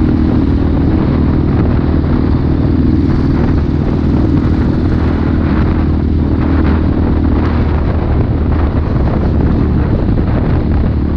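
A motorcycle engine hums steadily up close.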